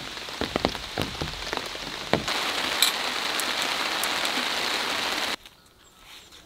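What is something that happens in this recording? Rain pours steadily.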